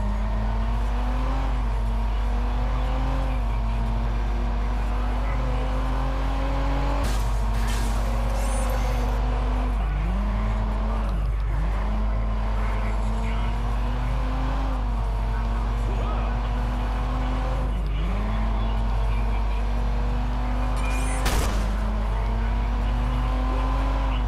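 A car engine drones at high revs, its pitch dropping and climbing again now and then.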